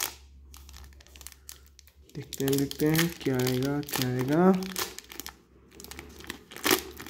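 A foil wrapper crinkles and tears as hands pull it open.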